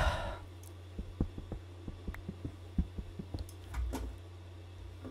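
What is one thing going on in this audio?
A video game pickaxe chips at stone blocks with short clicking taps.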